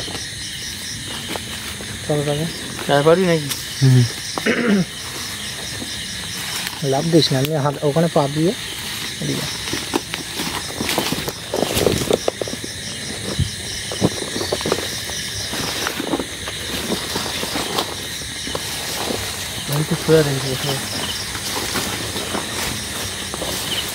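Footsteps crunch through undergrowth and leaves.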